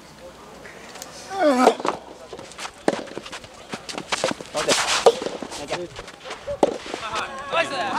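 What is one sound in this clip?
Tennis rackets strike a ball back and forth outdoors.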